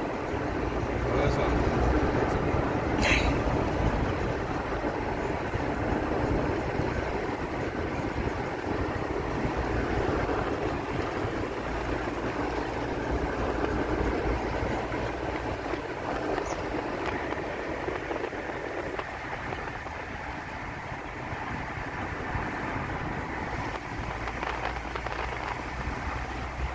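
A car drives steadily along a road.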